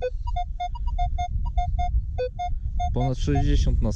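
A metal detector beeps in quick, short tones.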